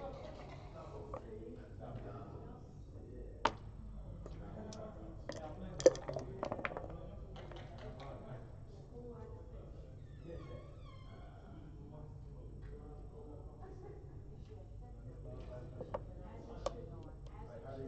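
Plastic game pieces click and clack against a board.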